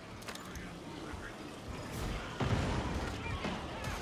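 Guns fire in sharp bursts.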